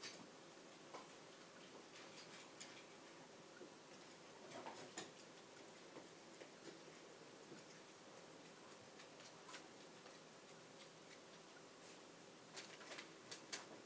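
A dog laps water from a metal bowl.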